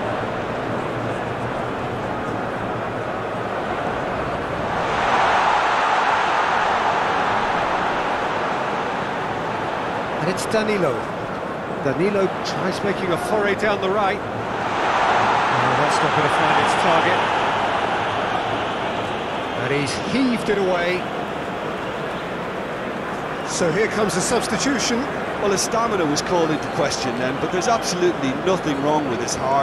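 A large stadium crowd roars, swelling loudly and fading again.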